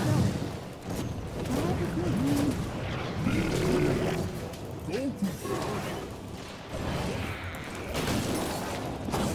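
Magic blasts and hits crackle and thud in a video game battle.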